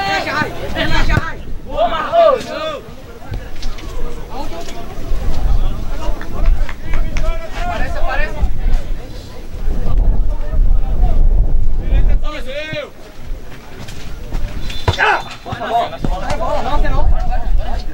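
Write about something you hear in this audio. Young men shout to one another across an open field.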